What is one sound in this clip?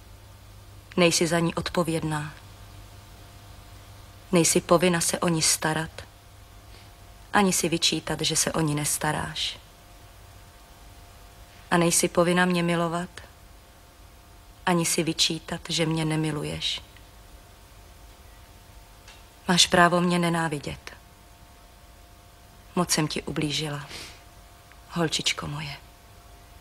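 A woman speaks softly and sadly in short phrases, close by.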